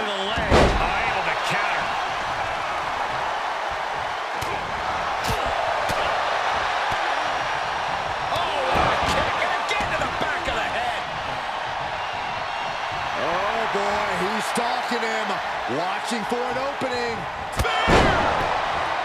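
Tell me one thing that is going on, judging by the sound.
Heavy thuds sound as bodies slam onto a wrestling ring mat.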